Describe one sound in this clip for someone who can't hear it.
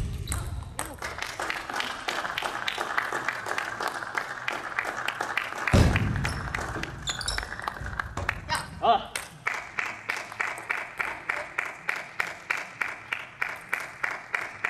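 A table tennis ball clicks sharply against paddles and the table in a large echoing hall.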